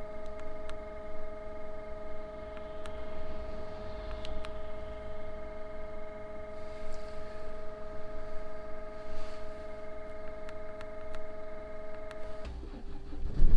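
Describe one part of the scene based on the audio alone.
A device sounds a steady electronic tone.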